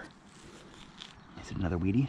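A hand trowel scrapes through soil.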